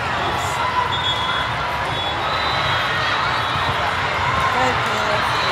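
A volleyball thuds off a player's arms.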